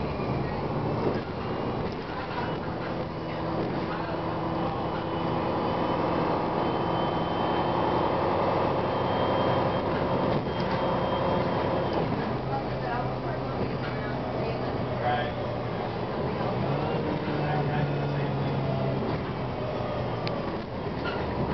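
A bus engine hums and whines steadily while the bus drives.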